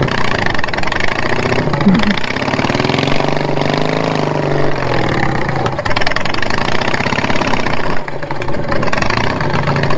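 A small engine drones steadily and revs up and down.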